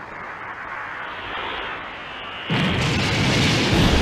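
A powerful energy surge roars and rumbles.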